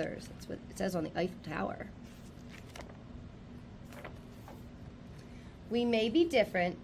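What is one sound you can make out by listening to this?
A young woman reads aloud calmly.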